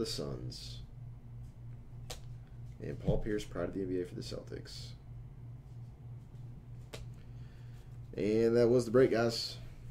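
Trading cards shuffle and slide in hands.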